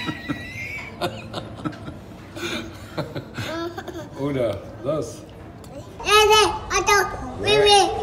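A toddler laughs and squeals close by.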